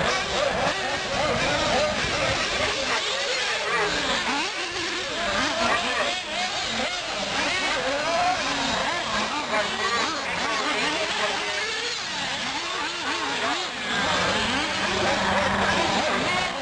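Small electric model cars whine at high speed, their pitch rising and falling as they race around outdoors.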